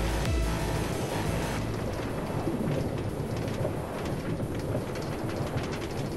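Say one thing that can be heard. A minecart rolls and rattles along a rail track.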